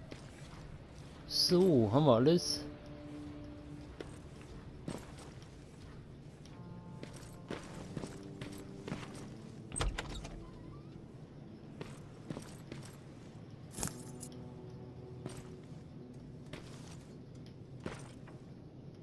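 Footsteps tread across a hard floor.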